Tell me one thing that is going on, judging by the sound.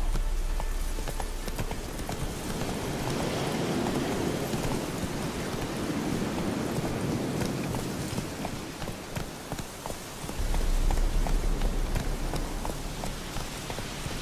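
Grass and brush rustle against a passing horse.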